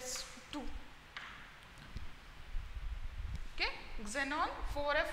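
A woman speaks calmly and clearly, as if teaching.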